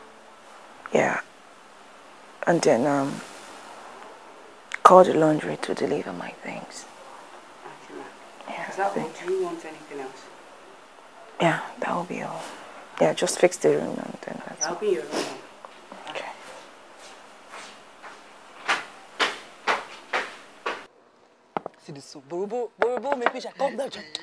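A young woman answers calmly, close by.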